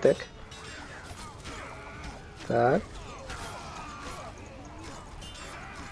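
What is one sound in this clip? Swords clash and ring.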